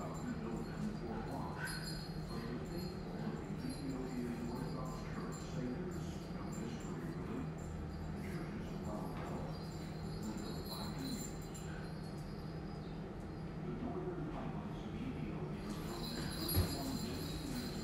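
A man talks softly to dogs close by.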